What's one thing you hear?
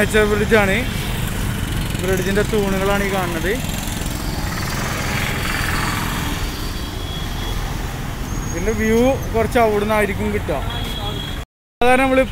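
Motorbike and car engines rumble steadily in busy street traffic.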